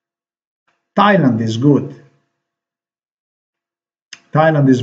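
A man speaks calmly and close to a microphone.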